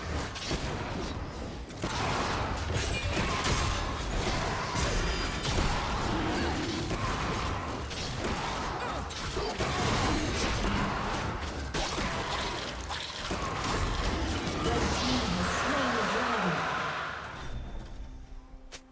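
Game spells and attacks crackle and thud in a busy fight.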